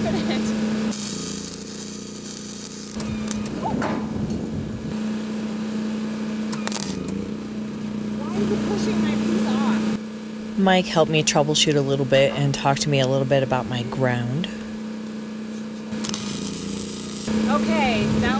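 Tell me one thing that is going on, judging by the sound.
A welding arc crackles and hisses.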